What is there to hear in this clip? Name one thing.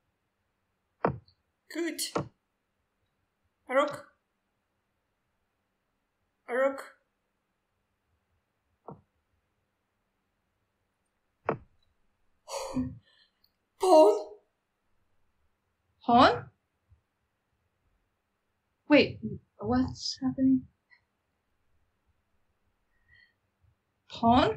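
A young woman speaks with animation over an online call, in short bursts.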